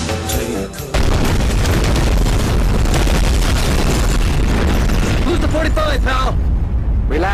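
An explosion roars.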